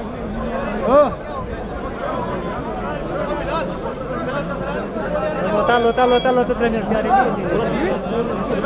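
A large crowd of men talks and shouts outdoors.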